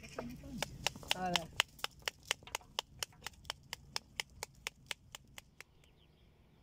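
A knife handle taps rapidly and evenly on a pomegranate.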